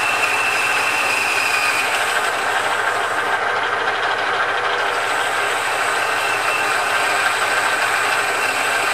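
A cutting tool scrapes and whines against turning metal.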